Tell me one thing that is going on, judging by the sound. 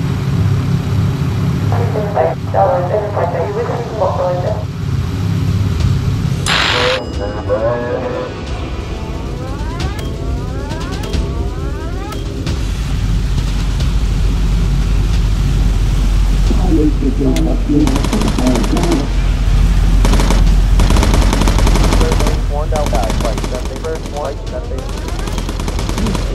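Propeller engines of a bomber plane drone steadily.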